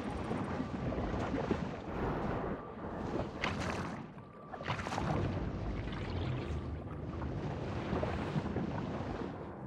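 Water rumbles and swirls steadily underwater.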